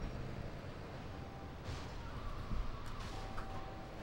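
Tyres screech as a car skids through a turn.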